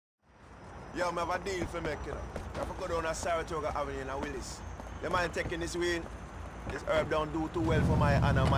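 A young man talks casually and with animation.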